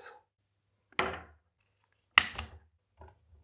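Metal hand tools click sharply against a plastic fitting.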